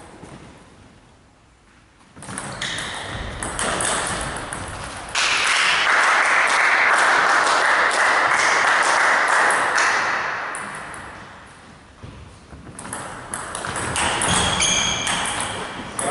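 A table tennis ball clicks back and forth between paddles and a table.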